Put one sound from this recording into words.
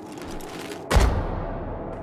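A heavy body lands with a loud thud.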